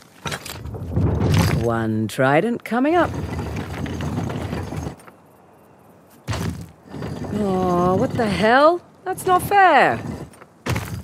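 A young woman talks to herself in a low, wry voice.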